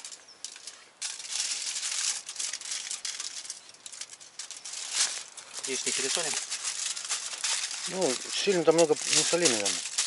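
Aluminium foil crinkles as it is unwrapped and folded.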